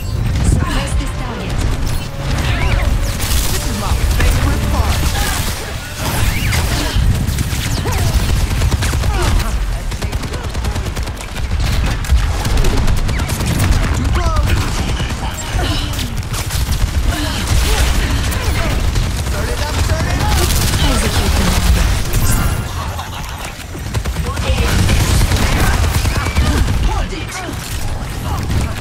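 A heavy gun fires in rapid bursts.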